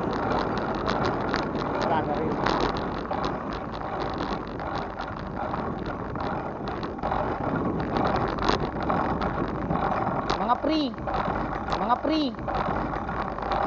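A bicycle rattles and clicks over the bumpy path.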